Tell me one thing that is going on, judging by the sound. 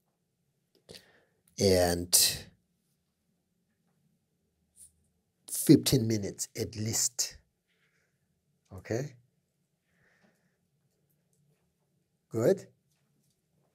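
A middle-aged man speaks calmly and close into a microphone, in short bursts with pauses.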